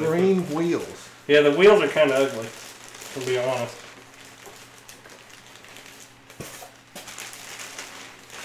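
Plastic wrap crinkles and rustles as hands pull it away.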